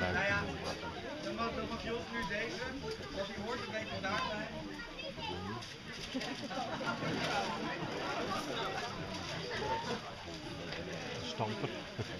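A crowd of men and women chat and laugh nearby outdoors.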